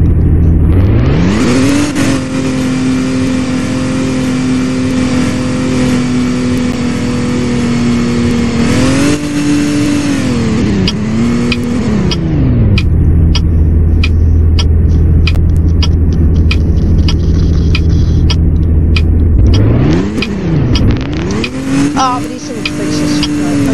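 A sports car engine revs up, holds a steady roar, then drops to a low idle and revs again.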